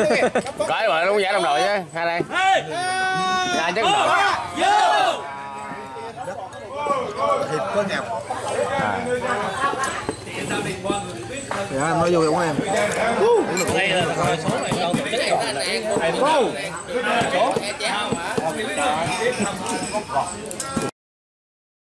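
Several men talk and shout loudly together close by.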